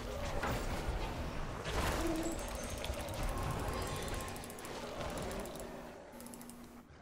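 Game battle effects whoosh and clash.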